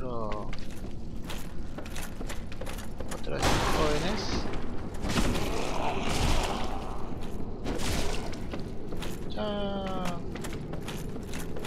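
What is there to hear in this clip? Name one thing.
Armoured footsteps clatter on wooden planks.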